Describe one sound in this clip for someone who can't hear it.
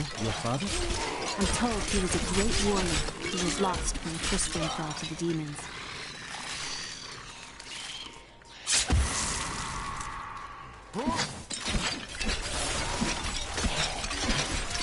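Game combat effects crash and thud.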